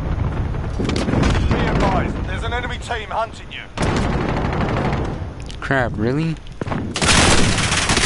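A rifle fires loud, sharp shots with a booming echo.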